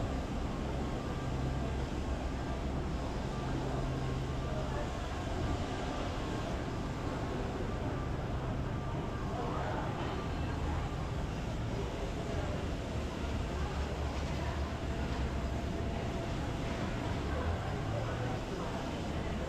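A parked jet's engine hums steadily nearby.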